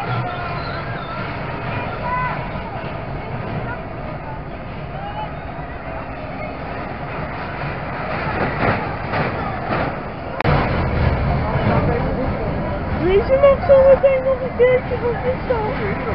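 A fairground ride rumbles and whirs as it turns.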